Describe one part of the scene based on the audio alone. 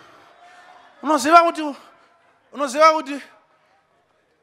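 A man preaches loudly into a microphone, his voice booming through loudspeakers.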